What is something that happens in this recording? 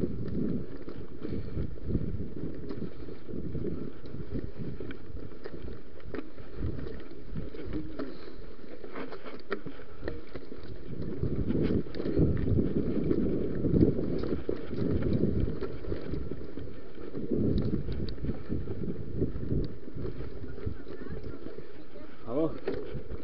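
Wind rumbles against a microphone while riding.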